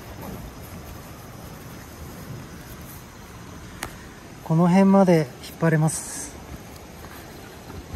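Nylon tent fabric rustles and crinkles under a hand.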